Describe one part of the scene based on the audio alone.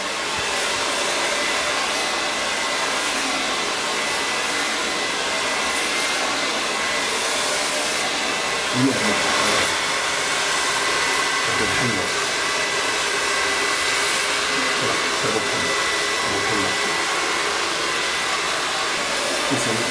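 A hair dryer blows with a steady, loud rush of air.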